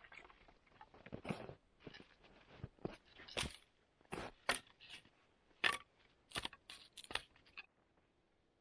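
Sticks snap and crack as a man breaks them.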